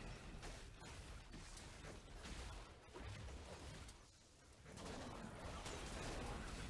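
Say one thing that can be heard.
Fantasy battle sound effects clash and zap in quick bursts.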